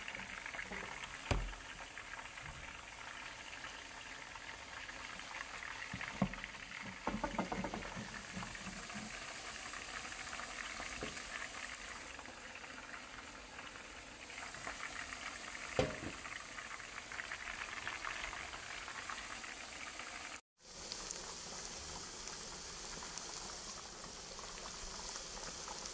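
Food sizzles steadily in a hot frying pan.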